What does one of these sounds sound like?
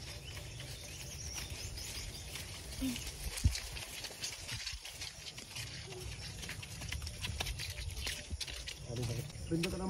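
Tall grass rustles and swishes against a horse's legs.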